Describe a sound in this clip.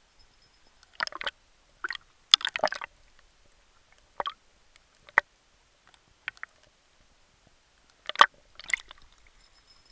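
A dolphin clicks underwater.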